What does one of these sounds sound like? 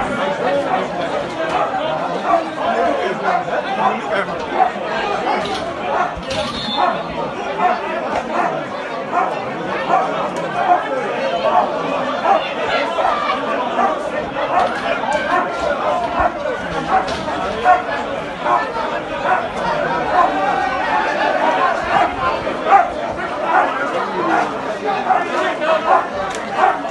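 A crowd of men shouts and clamours nearby, outdoors.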